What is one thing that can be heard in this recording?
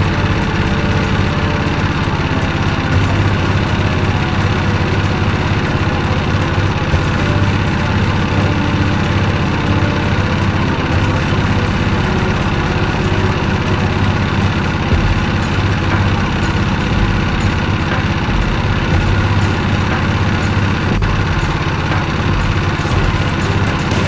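Tyres roll steadily over a bumpy dirt road.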